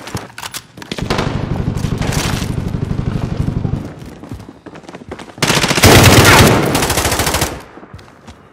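A rifle fires rapid bursts.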